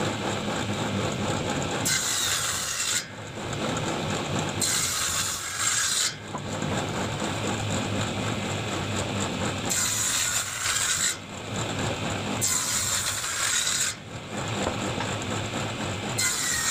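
A table saw blade spins with a steady whine.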